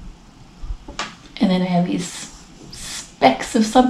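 A young woman speaks close to a microphone, thoughtfully and with pauses.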